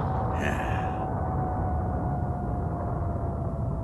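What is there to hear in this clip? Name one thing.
A huge explosion roars with a deep, rumbling blast.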